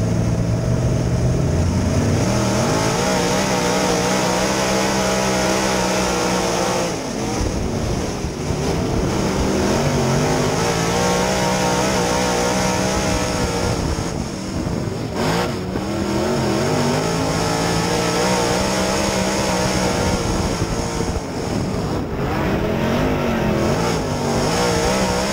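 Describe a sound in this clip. A race car engine roars loudly up close, rising and falling in pitch as it accelerates and lets off.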